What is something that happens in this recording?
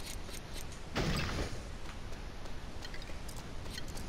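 A wooden crate smashes apart with a clatter.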